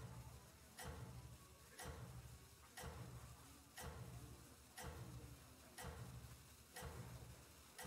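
Electronic game music plays with a steady, pounding beat about once a second.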